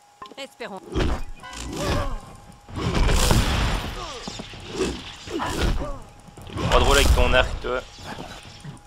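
Heavy weapons swing and strike with loud thuds and crashes.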